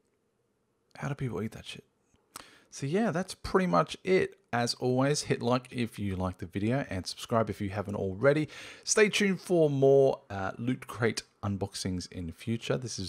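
A man speaks with animation, close into a microphone.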